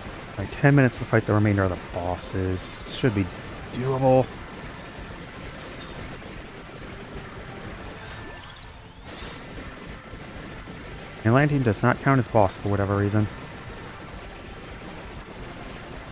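Video game spell effects crackle and chime rapidly.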